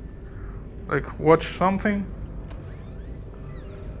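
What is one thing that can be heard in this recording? A wooden cabinet door creaks open.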